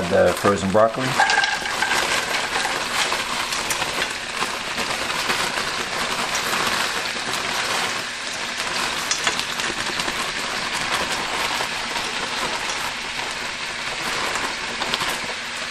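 Frozen vegetables sizzle loudly in hot oil in a pan.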